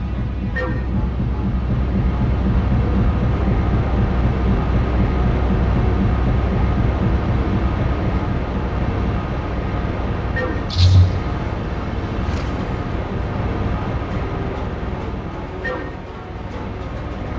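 A low, steady droning hum runs throughout.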